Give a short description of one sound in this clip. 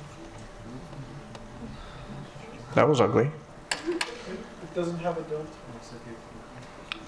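A young man speaks calmly through a microphone in a large room.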